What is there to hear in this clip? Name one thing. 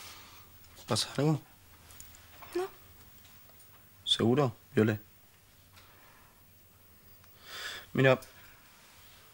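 A young woman speaks softly in reply.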